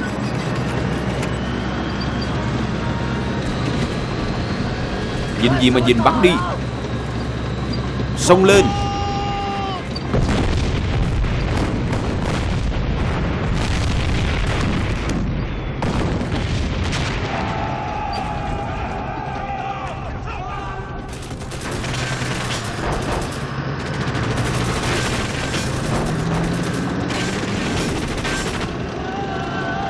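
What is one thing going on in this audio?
A tank engine rumbles and its tracks clatter.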